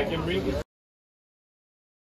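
Diners chat nearby at outdoor tables.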